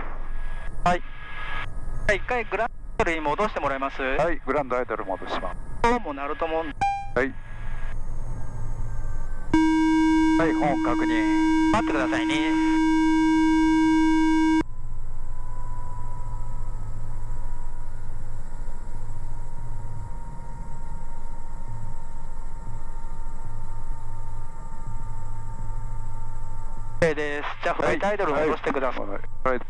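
A helicopter engine hums steadily from inside the cabin.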